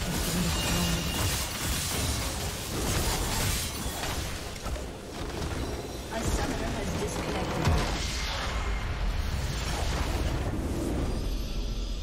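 Fighting sound effects clash, zap and crackle rapidly.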